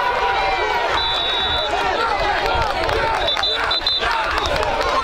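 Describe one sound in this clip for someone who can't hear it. A referee's whistle blows in short shrill blasts.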